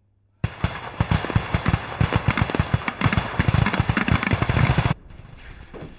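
Firecrackers crackle and pop in rapid bursts.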